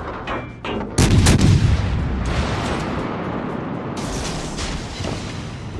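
Heavy ship guns fire with deep, booming blasts.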